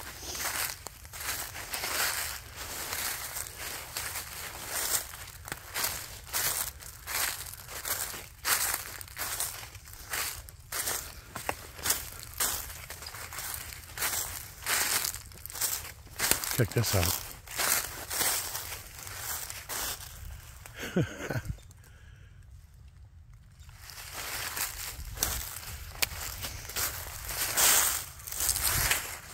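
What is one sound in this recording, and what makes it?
Footsteps crunch through dry fallen leaves.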